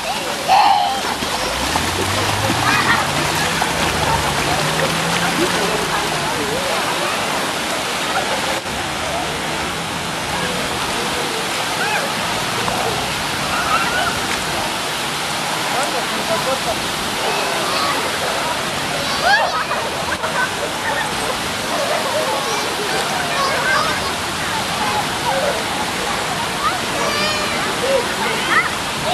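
Water splashes as small children run through a shallow pool.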